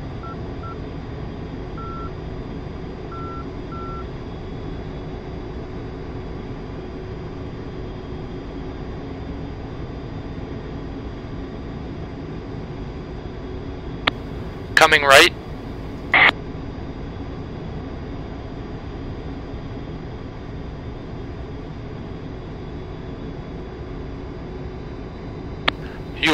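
A jet engine drones steadily from inside a cockpit.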